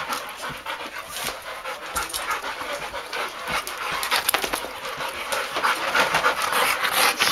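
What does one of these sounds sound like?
Dogs pant and snuffle close by.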